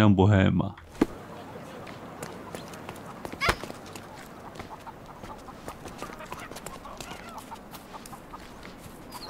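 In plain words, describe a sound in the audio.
Footsteps run quickly over stone pavement.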